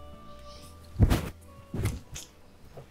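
A man jolts up on a couch with a soft thump.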